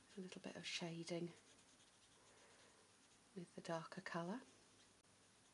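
A felt-tip marker rubs softly on paper.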